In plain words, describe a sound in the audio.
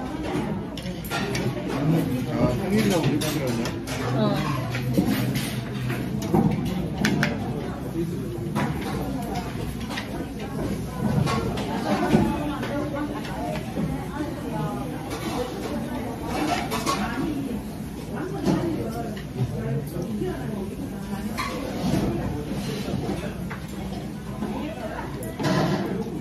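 A crowd of people chatters in a large room.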